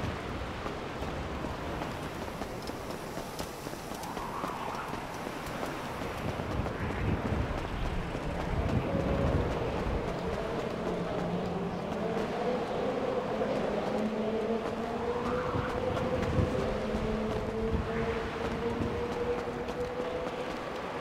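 Footsteps run across a hard concrete surface.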